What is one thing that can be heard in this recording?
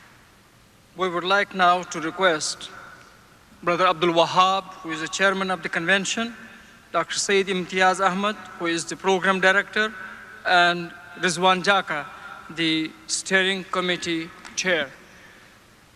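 An elderly man speaks calmly into a microphone over loudspeakers.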